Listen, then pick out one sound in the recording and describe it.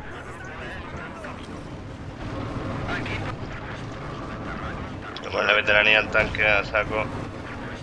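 A tank engine rumbles as the tank rolls forward.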